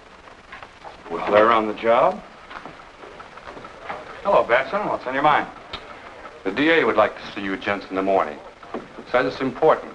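A second man answers in a firm voice.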